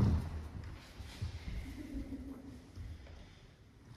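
A folding chair knocks and scrapes on a wooden floor.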